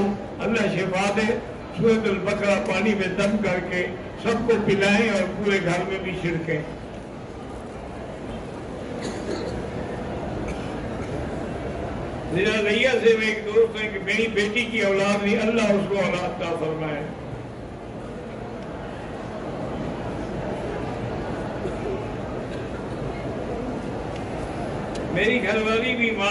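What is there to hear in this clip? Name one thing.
An elderly man speaks slowly and earnestly into a microphone, with pauses, in an echoing hall.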